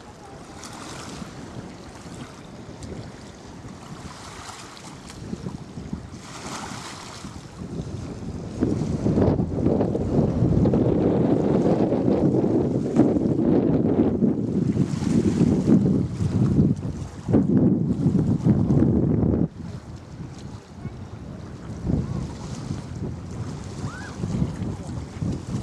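Wind blows outdoors over open water, gusting and rumbling strongly for a while.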